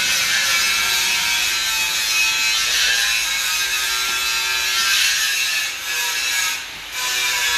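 A metal lathe whirs and screeches as it cuts steel.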